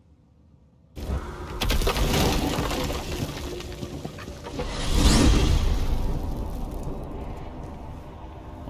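A portal opens with a loud rushing whoosh that swells and then fades.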